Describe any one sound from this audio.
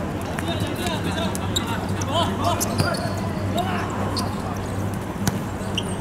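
A player kicks a futsal ball on a hard court.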